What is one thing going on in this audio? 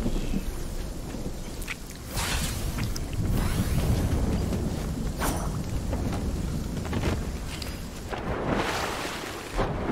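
Footsteps run over sand and wooden boards.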